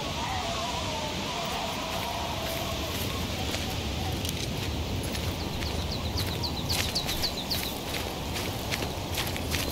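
A river rushes and splashes steadily nearby.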